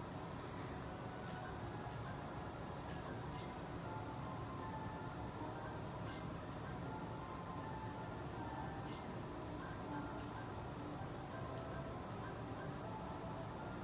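Soft game music plays steadily.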